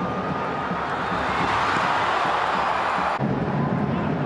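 A large stadium crowd roars, swelling loudly.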